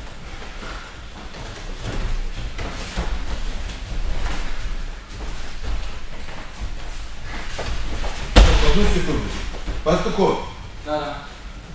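Bare feet shuffle and stamp on soft mats.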